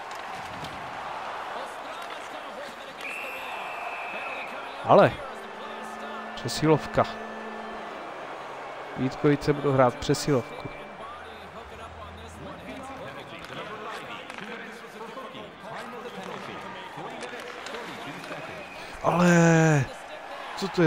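Skates scrape across ice during an ice hockey game.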